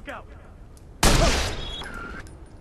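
A rifle fires a single loud shot that echoes briefly.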